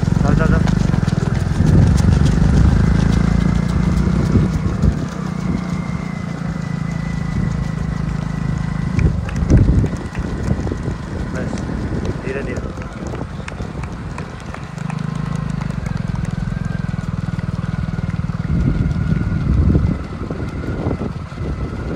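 Many runners' feet slap on a paved road.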